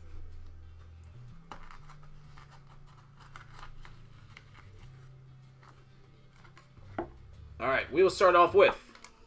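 Hands rustle and tap on a cardboard box close by.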